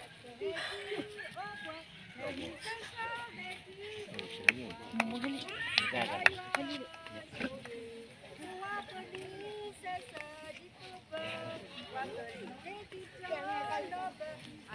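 A crowd of men, women and children chatter outdoors.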